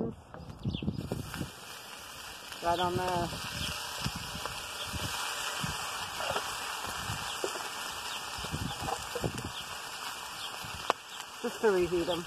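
Food sizzles and crackles in a hot pan.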